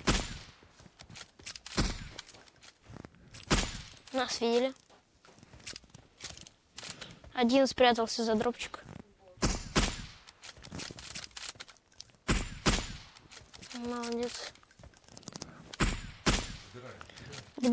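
Rifle shots crack out one at a time, each with a short echo.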